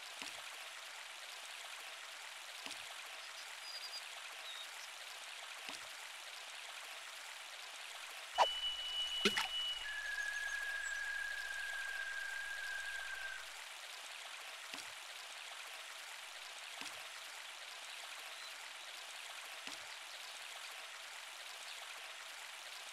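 A river flows steadily with a soft rushing.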